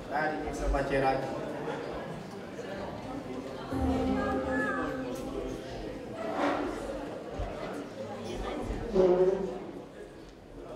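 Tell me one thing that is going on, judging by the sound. A man sings into a microphone through loudspeakers in a large echoing hall.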